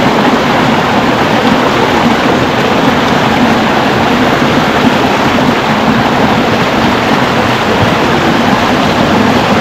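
A small waterfall splashes steadily over rocks, close by.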